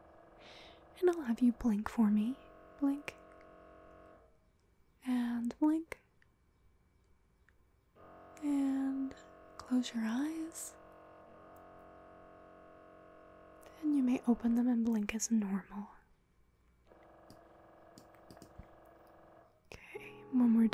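A young woman sings close into a microphone.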